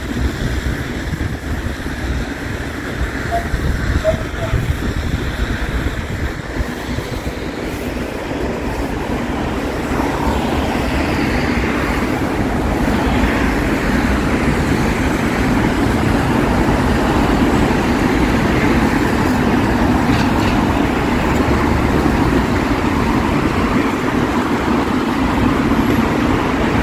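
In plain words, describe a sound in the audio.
Light rain patters steadily on wet pavement.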